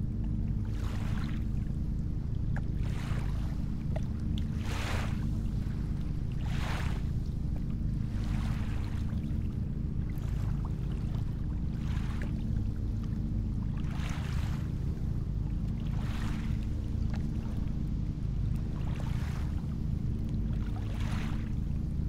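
Waves wash and swell gently on the open sea.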